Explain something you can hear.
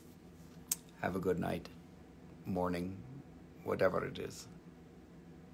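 A man speaks softly and calmly close by.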